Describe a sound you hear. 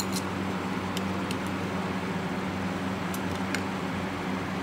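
A wooden stick clinks against a glass mug while stirring.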